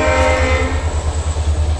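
A train horn blares briefly.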